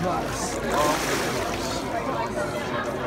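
Water splashes as a man rises up out of a pool.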